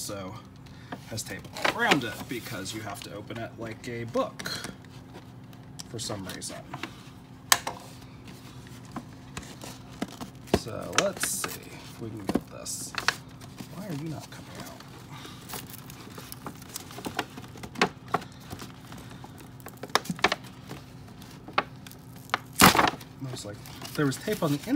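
Fingers tap and knock on a cardboard box.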